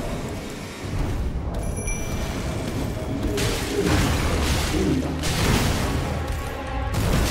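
Heavy blows and crashes thud in a fight.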